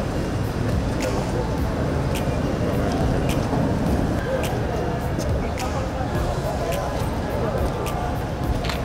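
Vehicle engines rumble as a convoy drives slowly past.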